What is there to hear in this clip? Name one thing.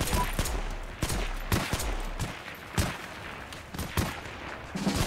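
Pistol shots crack sharply, several times.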